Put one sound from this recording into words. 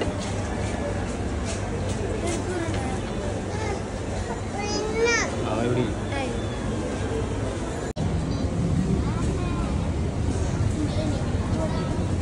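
A crowd of people murmurs and chatters indoors.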